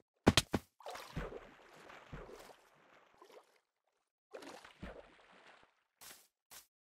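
Water splashes and swirls as something wades through it.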